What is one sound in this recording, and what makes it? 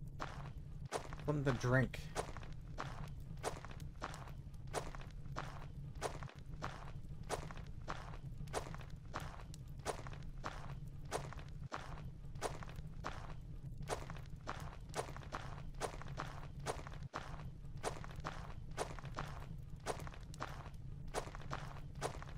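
Footsteps tread steadily on stone in an echoing passage.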